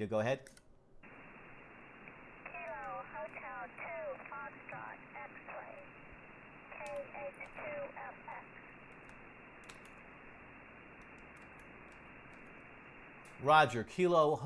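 A radio receiver hisses with static.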